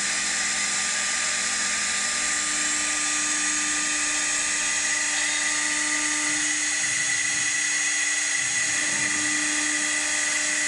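A wood lathe whirs steadily as a cutter shaves a spinning wooden spindle.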